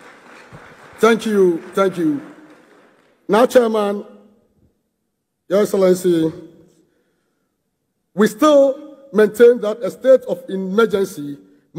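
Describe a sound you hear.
A man speaks into a microphone over loudspeakers, pausing between phrases.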